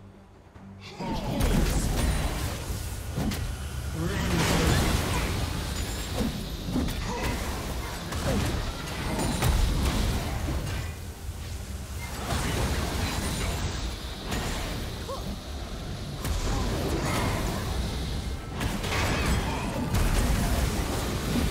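Game combat sounds clash and crackle with magic blasts and hits.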